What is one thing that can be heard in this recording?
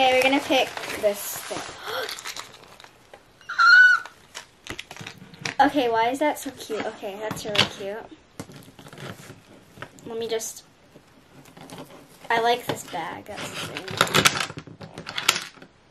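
Plastic packaging crinkles and rustles as it is opened.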